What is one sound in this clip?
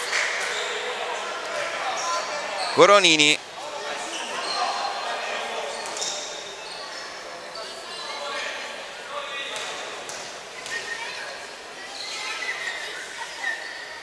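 Basketball shoes squeak on a wooden floor.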